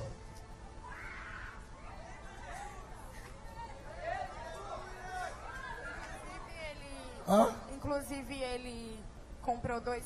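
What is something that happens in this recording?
A girl speaks tearfully through a microphone.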